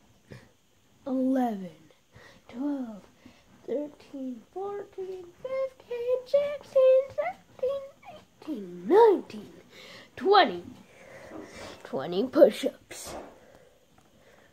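A boy talks with animation close to the microphone.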